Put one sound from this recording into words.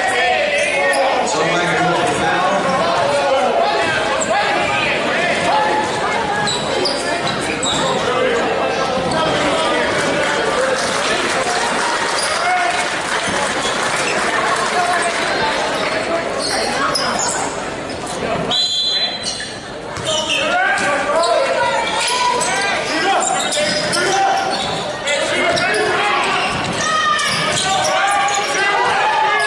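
Young men shout and call out to each other in an echoing gym.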